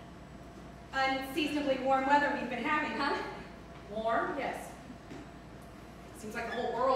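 A second woman answers calmly.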